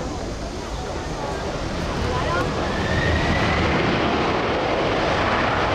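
A jet airliner's engines roar loudly and rise in pitch as it speeds down a runway.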